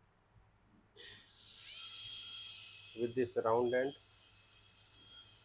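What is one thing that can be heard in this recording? A dental drill whirs with a high, steady whine.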